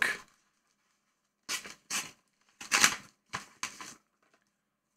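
Paper envelopes rustle and crinkle as they are opened.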